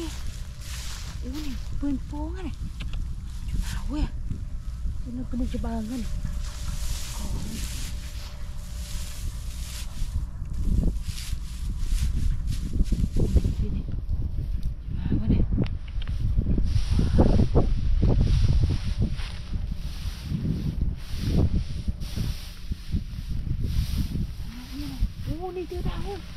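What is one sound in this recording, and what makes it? Footsteps crunch and rustle through dry straw.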